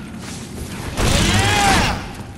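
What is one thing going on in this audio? A fiery blast bursts with a roar.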